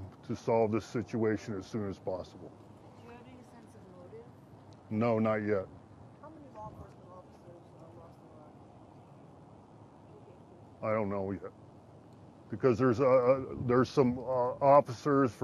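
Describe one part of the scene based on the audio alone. A middle-aged man speaks calmly into a microphone, with pauses between phrases.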